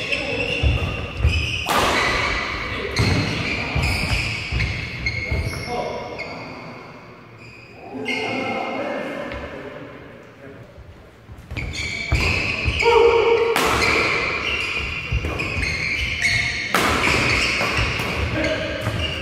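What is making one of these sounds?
Rackets strike a shuttlecock in quick rallies in a large echoing hall.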